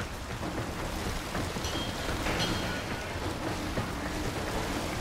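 Heavy footsteps thud quickly as a figure in armour runs.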